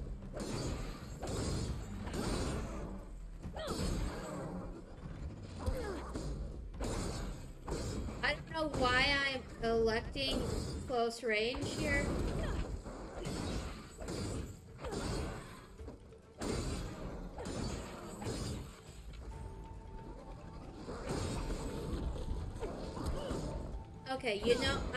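Weapons clash and strike in a fight, with sharp thuds and bursts.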